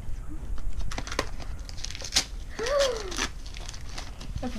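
Wrapping paper rustles and tears.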